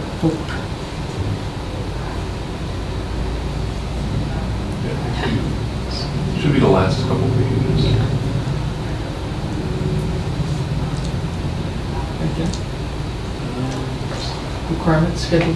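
A man speaks calmly in a room, heard through a distant microphone.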